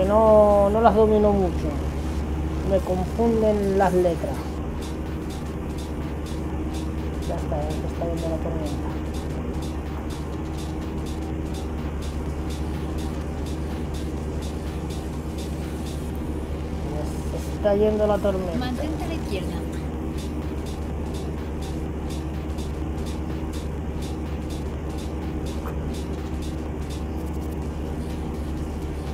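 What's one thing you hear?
A truck engine drones steadily at a low pitch.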